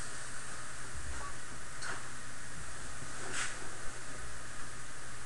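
Footsteps thump softly on the floor close by.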